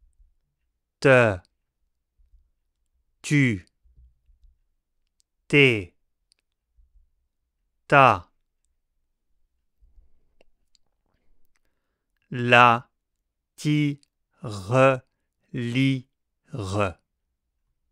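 A middle-aged man speaks close to a microphone, saying short syllables one at a time with pauses between them, then a few quick words in a row.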